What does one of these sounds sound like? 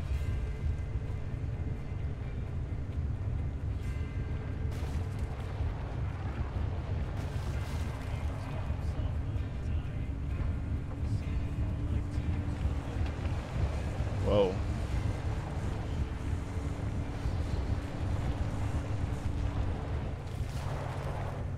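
A truck engine rumbles low and steady.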